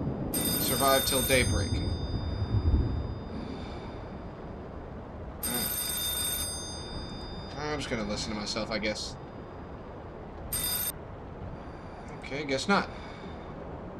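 A man speaks in short bursts into a close microphone.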